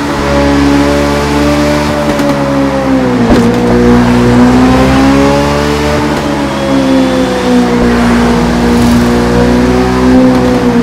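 A motorcycle engine roars steadily, its pitch rising and falling as it shifts gears.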